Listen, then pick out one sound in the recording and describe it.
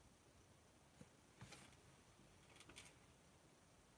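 A paper card rustles softly as hands handle it.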